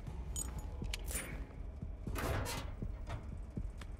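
A metal locker door swings open with a clank.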